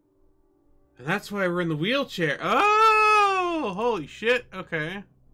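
A man speaks animatedly into a close microphone, his voice rising and falling in pitch.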